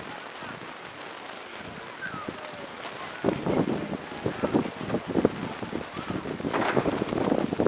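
Sea water laps gently outdoors.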